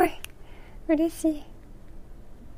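A young woman speaks and laughs softly, close to a microphone.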